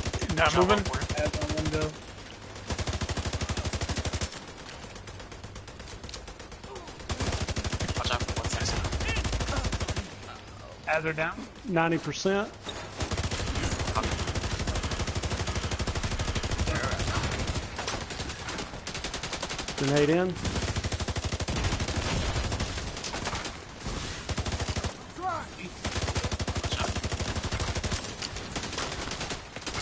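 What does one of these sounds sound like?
Rapid automatic gunfire rattles in long bursts.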